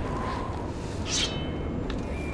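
A sword slides out of its sheath with a metallic ring.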